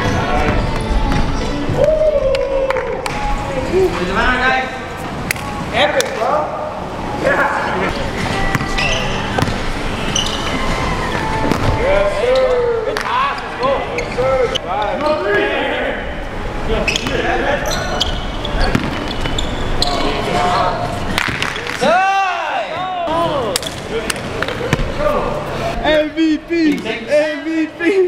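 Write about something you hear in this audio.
Young men talk and shout with animation outdoors.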